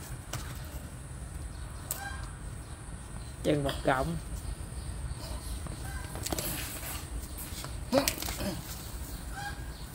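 Roots rip and crunch as they are pulled out of the soil.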